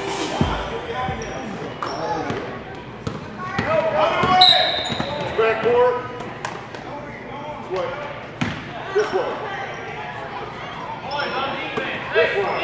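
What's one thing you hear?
Spectators call out and cheer nearby.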